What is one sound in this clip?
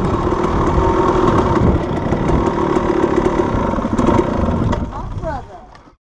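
A dirt bike engine runs loudly and close, then drops to idle.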